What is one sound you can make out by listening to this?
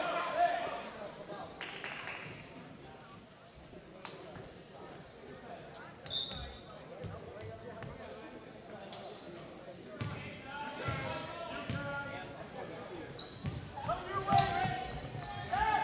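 A crowd murmurs and calls out in an echoing gym.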